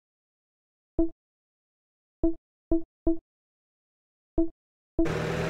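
Menu buttons click several times.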